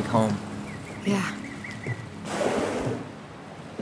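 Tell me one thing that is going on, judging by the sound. A young woman speaks quietly.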